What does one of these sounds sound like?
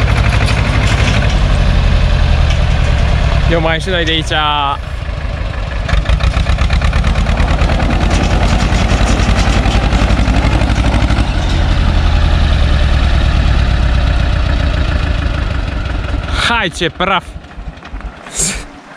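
A small tractor engine chugs loudly and steadily close by.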